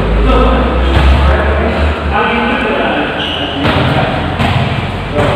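A volleyball thuds as a player strikes it.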